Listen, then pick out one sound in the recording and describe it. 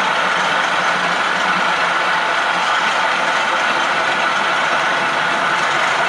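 A model train's electric motor hums steadily.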